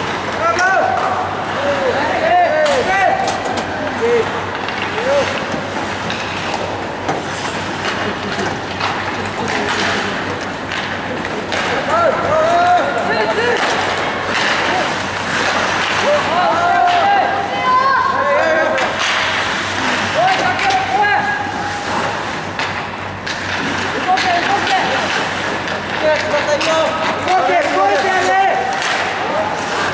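Skates scrape and hiss across ice in a large echoing rink.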